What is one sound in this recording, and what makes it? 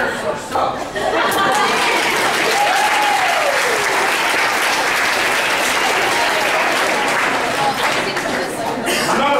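An audience applauds and cheers loudly in a room.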